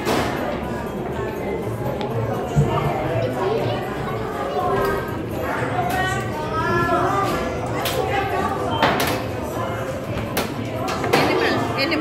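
Many young children chatter and shout nearby in a busy, echoing room.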